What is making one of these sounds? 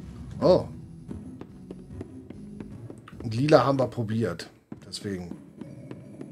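A man speaks with animation, close into a microphone.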